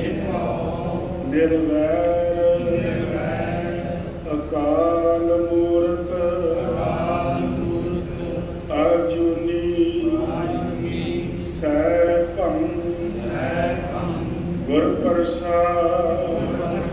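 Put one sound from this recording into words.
A harmonium plays a steady droning melody.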